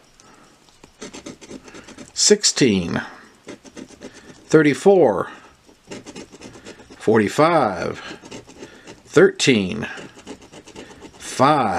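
A coin scrapes rapidly across a scratch card.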